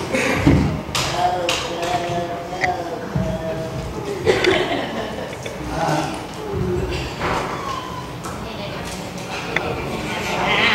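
A young girl speaks through a microphone and loudspeaker.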